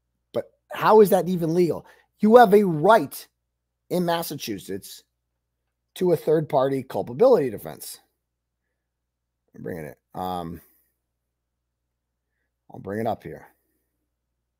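A middle-aged man speaks with animation into a close microphone, in short bursts with pauses.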